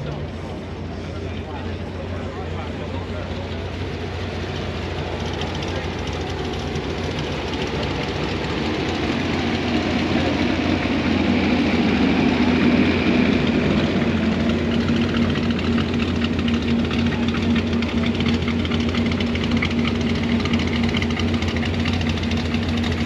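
A big car engine rumbles deeply and grows louder as it rolls closer.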